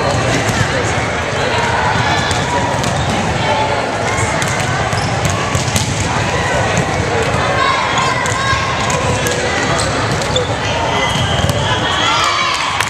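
Girls' voices chatter and call out across a large echoing gym.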